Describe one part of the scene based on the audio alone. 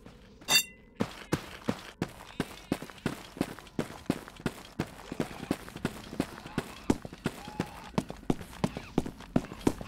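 Footsteps crunch steadily on dry dirt at a quick walking pace.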